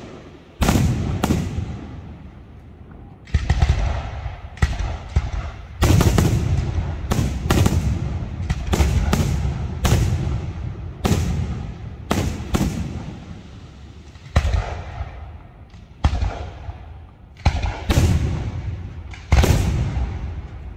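Fireworks crackle and fizz high overhead.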